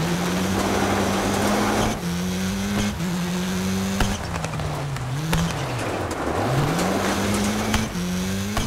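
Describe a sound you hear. A rally car engine revs hard, shifting gears up and down.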